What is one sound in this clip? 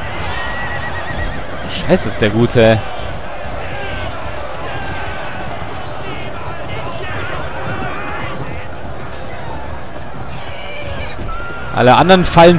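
Many swords and shields clash in a large battle.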